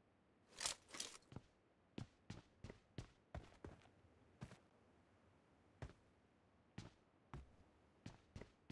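Footsteps thud on hard ground in short bursts.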